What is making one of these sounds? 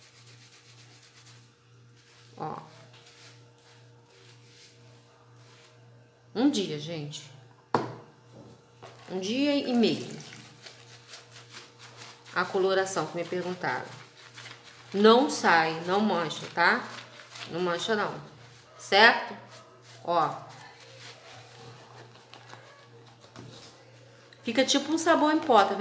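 A wet sponge squelches as it is rubbed in soapy water.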